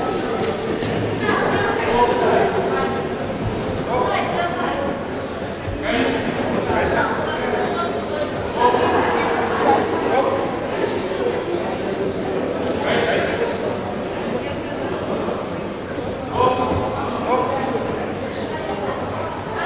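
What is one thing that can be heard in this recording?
Young spectators shout and cheer nearby in an echoing hall.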